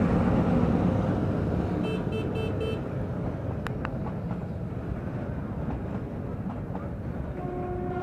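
Train carriages clatter over the rails.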